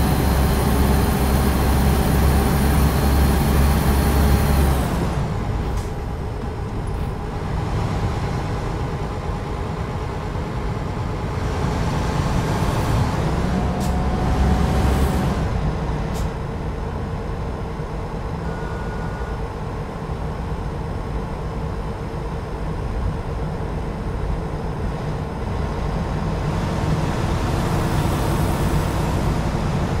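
Tyres roll on a rough road.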